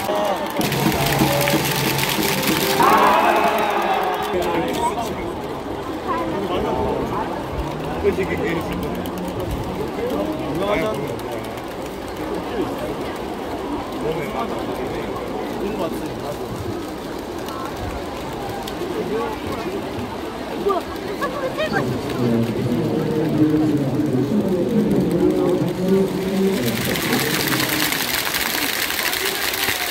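A large stadium crowd cheers and chants.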